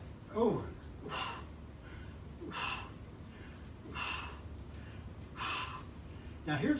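A man exhales sharply with each leg lift.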